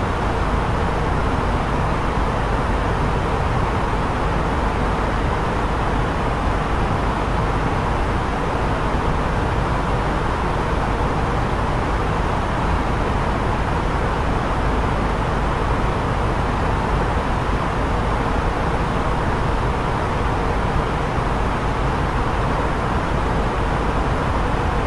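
A steady roar of jet engines and rushing air fills an aircraft cockpit.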